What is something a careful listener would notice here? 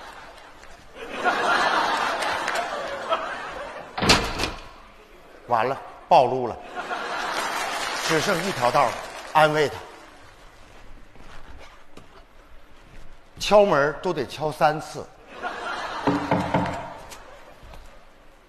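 An audience laughs and claps in a large hall.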